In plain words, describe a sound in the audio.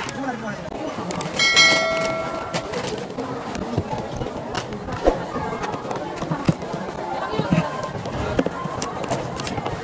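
Packages thud softly as they are set down on a counter.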